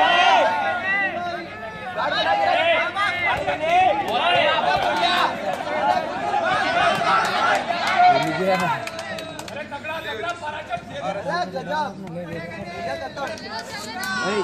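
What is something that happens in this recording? Several young men shout and cheer excitedly outdoors.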